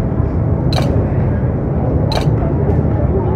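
Short menu chimes sound twice.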